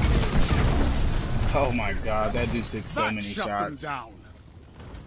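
Explosions boom and crackle loudly.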